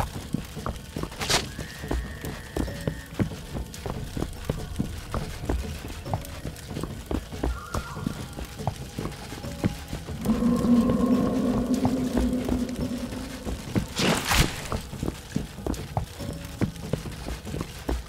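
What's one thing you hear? Quick footsteps thud steadily over soft ground.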